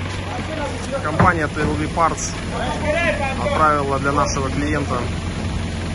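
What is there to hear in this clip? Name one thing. Men talk with each other outdoors, nearby.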